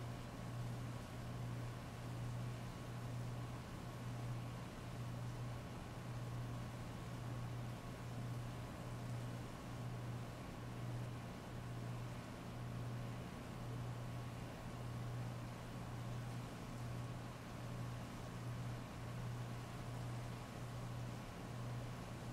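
Heavy rain pours steadily onto a paved street.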